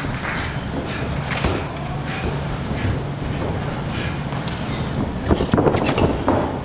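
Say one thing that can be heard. Bodies thud against the wrestling ring mat and ropes.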